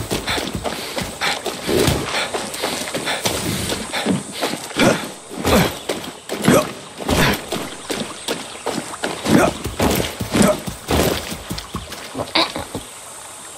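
Footsteps crunch quickly on a dirt path.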